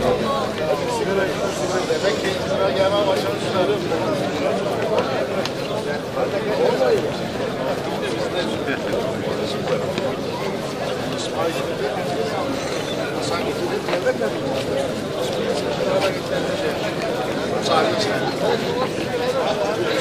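A crowd of men chatter and greet each other outdoors.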